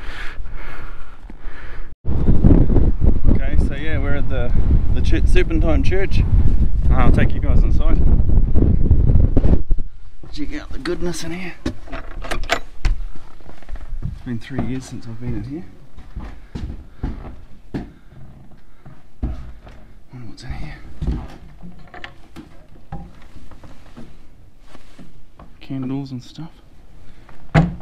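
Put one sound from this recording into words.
A middle-aged man talks calmly close to the microphone.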